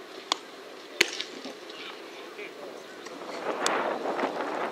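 A baseball smacks into a leather glove with a sharp pop.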